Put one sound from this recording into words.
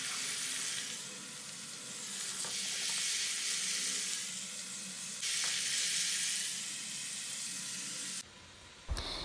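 Shrimp sizzle and crackle in hot oil.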